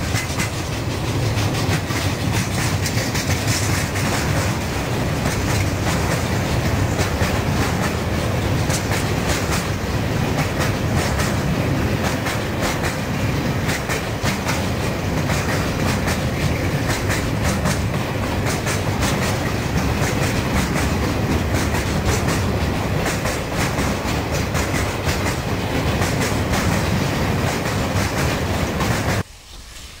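Wheels clatter and click rapidly over rail joints.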